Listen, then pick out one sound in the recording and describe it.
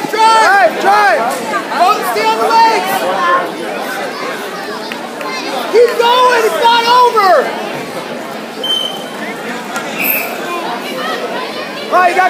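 Spectators shout and cheer loudly in a large echoing hall.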